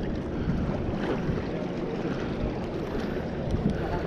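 A fishing reel clicks as its handle turns.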